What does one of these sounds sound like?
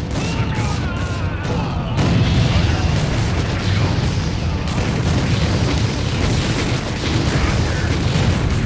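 Gunfire rattles steadily.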